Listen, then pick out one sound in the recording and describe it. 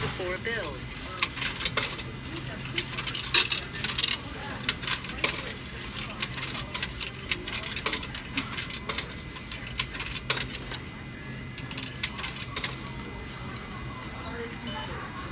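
Coins clink and drop one by one into a machine.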